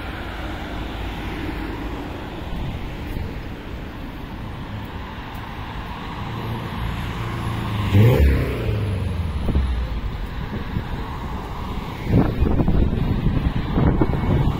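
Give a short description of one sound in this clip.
Footsteps scuff on paving stones.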